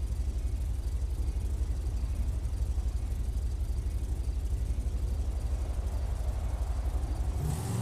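A car engine idles.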